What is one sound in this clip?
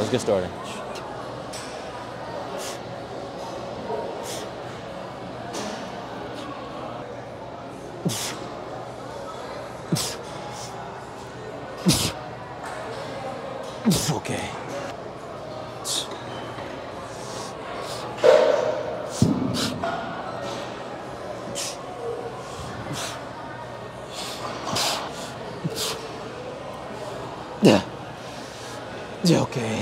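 A steady murmur of activity fills a large echoing room.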